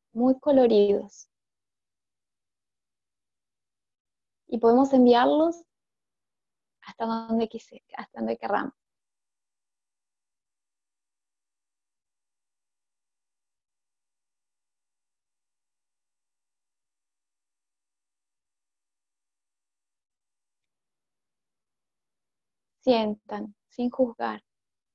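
A woman sings softly into a microphone, in short phrases with long pauses.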